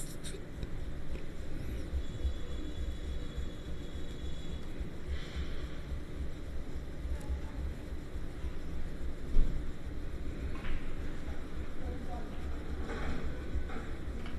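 A man talks calmly through a microphone.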